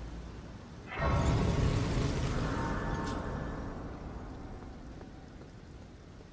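A shimmering chime swells and slowly fades.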